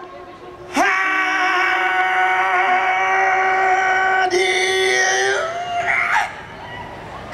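A man sings loudly with long held notes through a microphone.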